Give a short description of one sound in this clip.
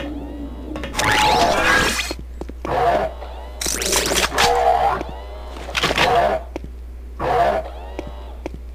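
Pickup chimes ring out in a quick series.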